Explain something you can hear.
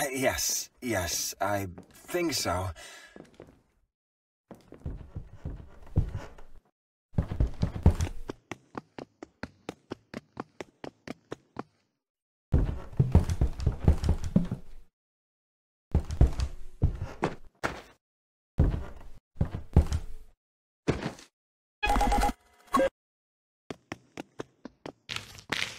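Quick footsteps run and thud on a wooden floor.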